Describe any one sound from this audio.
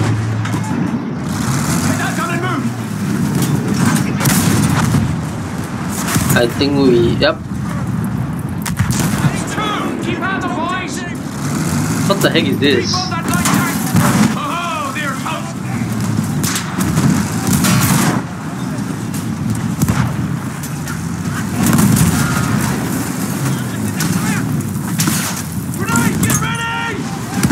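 A heavy tank engine rumbles and clanks steadily.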